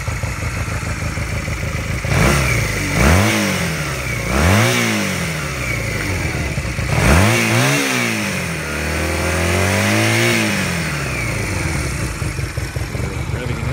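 A motorcycle engine idles with a steady rumble.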